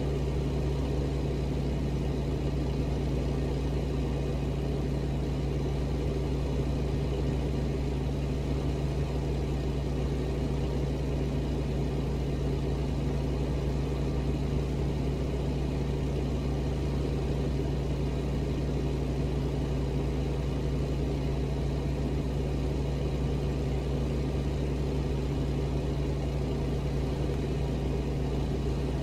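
Tyres roll on a road with a low, even rumble.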